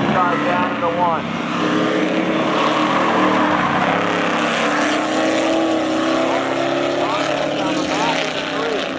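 Car engines roar loudly as two cars drift.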